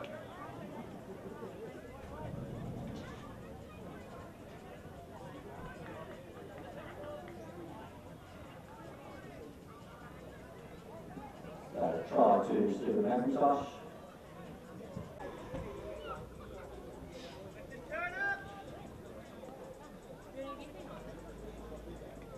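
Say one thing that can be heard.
A crowd of spectators outdoors chatters nearby.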